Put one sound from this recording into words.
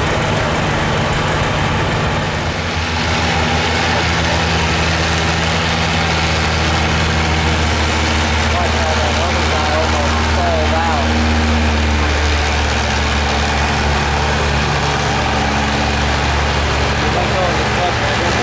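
A tractor engine roars loudly and steadily as it pulls a heavy sled.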